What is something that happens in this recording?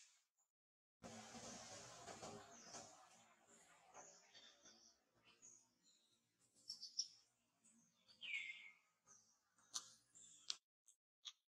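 Dry leaves rustle under walking monkeys.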